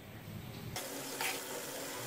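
A metal spoon scrapes against a metal pan.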